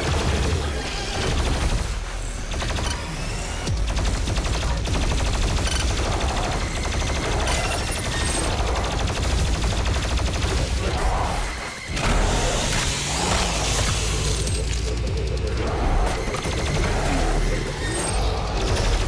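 Heavy guns fire rapidly with loud blasts.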